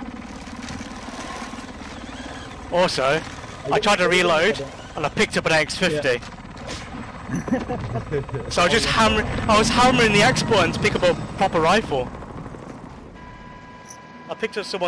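A helicopter's rotor drones loudly overhead.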